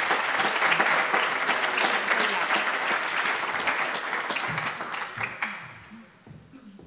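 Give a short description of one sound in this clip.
An audience applauds in a hall.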